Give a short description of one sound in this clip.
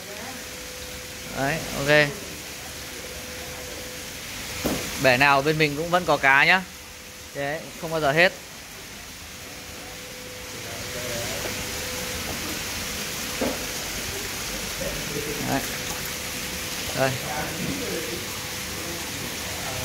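Water pours in a thin stream into a tank and splashes on the surface.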